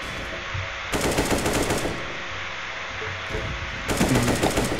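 A rifle fires several rapid shots.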